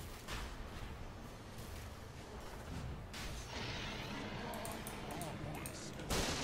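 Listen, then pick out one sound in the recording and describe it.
Game sword hits clang and thud.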